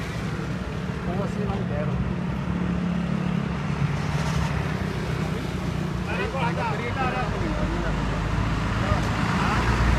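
Men talk loudly nearby, outdoors.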